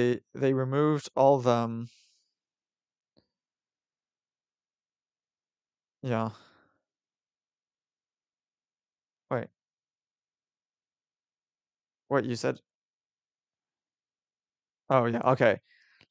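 A young man speaks into a close microphone in short, calm phrases with pauses.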